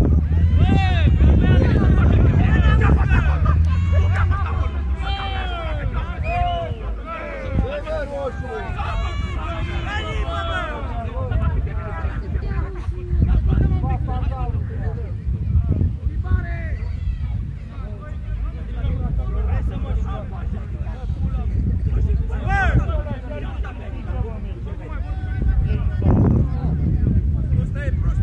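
Men shout and call out to each other across an open field.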